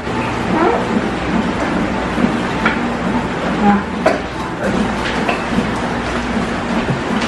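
Dishes and utensils clink and knock.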